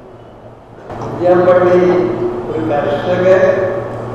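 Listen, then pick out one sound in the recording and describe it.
An elderly man speaks loudly through a microphone and loudspeakers.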